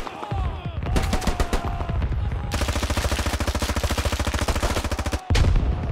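Rifle shots ring out close by.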